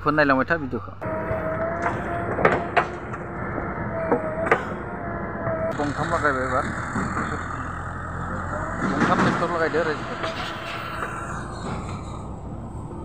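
A digger's engine rumbles steadily nearby.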